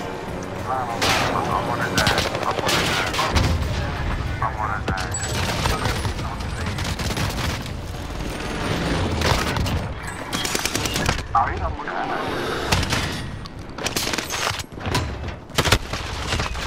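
Rapid gunfire bursts out in loud, sharp cracks.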